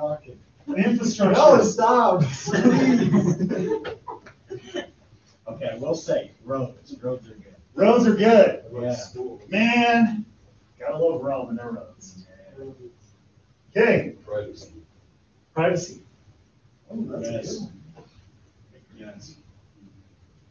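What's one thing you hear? A man speaks with pauses, addressing a class.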